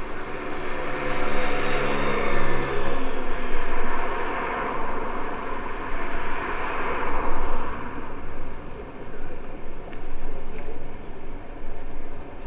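Wind rushes steadily past outdoors.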